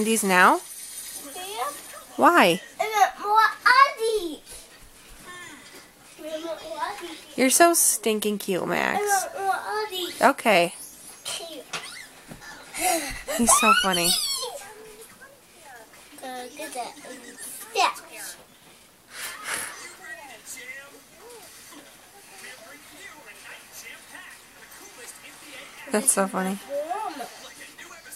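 A toddler babbles and shouts playfully nearby.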